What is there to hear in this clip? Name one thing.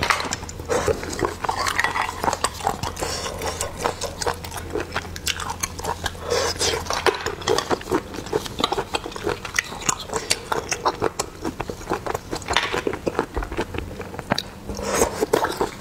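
A young woman slurps and sucks snails close to a microphone.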